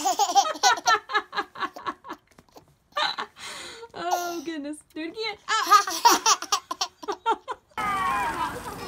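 A baby laughs loudly in bursts, close by.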